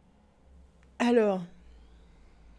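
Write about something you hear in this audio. A young man lets out a short, loud, falling vocal sound close to a microphone.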